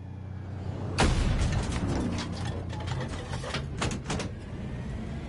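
Explosions burst close by.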